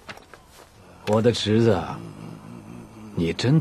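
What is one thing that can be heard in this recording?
Several men laugh heartily.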